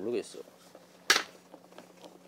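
A can's ring-pull snaps open.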